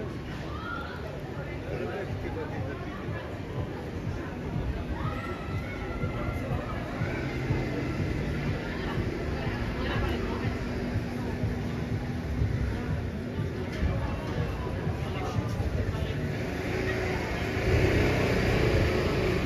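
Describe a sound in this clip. A crowd of men and women chatters along a busy street.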